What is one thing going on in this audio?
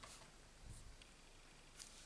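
A sponge tool rubs softly across paper.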